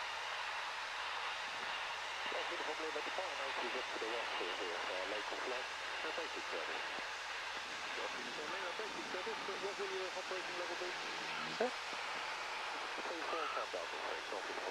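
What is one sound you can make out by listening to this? A small propeller plane's engine drones steadily from inside the cabin.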